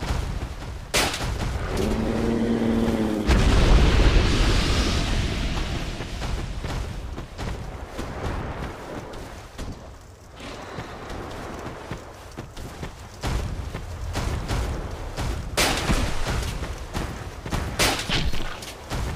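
Blades clang and strike against a hard body.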